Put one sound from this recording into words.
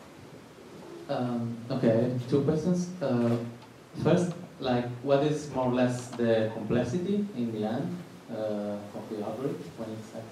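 A woman speaks calmly through a microphone in an echoing room.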